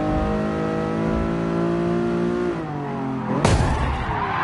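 A racing car engine drops in pitch as the car slows and shifts down.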